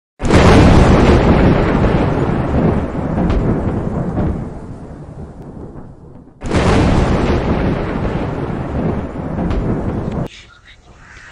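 Heavy rain pours down in a steady rush.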